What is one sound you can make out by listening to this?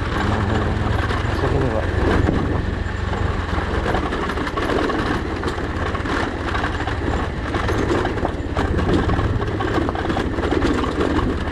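Tyres crunch and rattle over loose gravel and stones.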